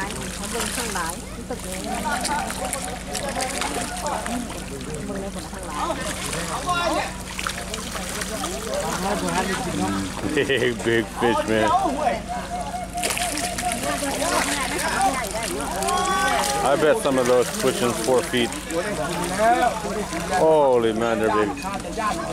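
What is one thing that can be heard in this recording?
Fish splash and churn the water's surface.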